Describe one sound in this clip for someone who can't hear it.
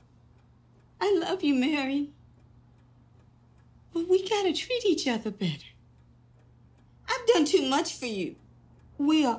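An older woman speaks calmly and close by.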